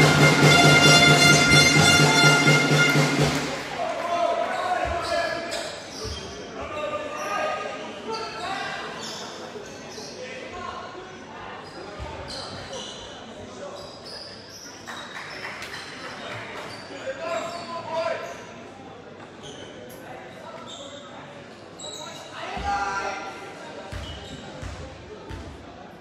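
Men and women talk in a large echoing hall.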